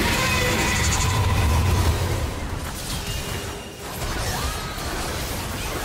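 Impacts thud and explode during a game battle.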